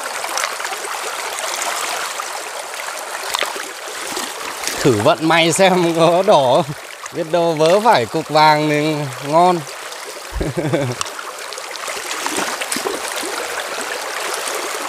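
Shallow water ripples and gurgles over stones nearby.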